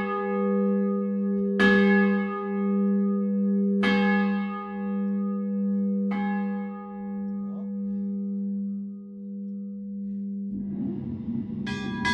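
A large church bell tolls slowly, each deep stroke ringing on and humming.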